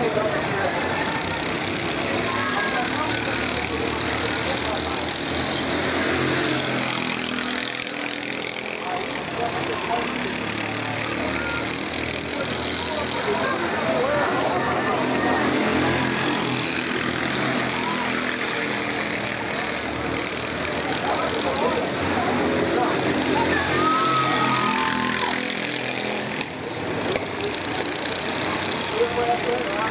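A go-kart engine buzzes and whines as karts race by, rising and falling as they speed up and slow down.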